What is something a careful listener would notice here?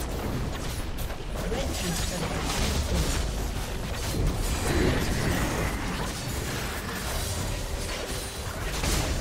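Magic spells crackle in a chaotic fight.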